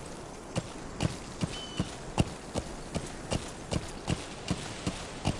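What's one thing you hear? Horse hooves thud steadily on a dirt track at a trot.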